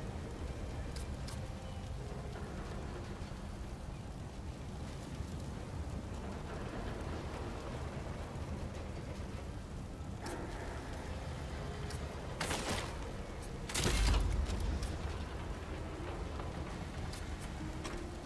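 Menu clicks tick sharply now and then.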